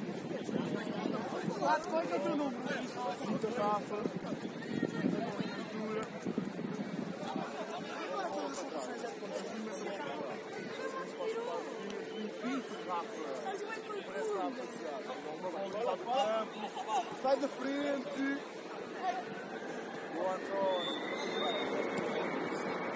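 Spectators call out and chat nearby.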